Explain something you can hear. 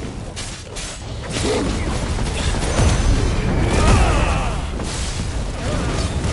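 A blade slashes through the air with sharp swishes.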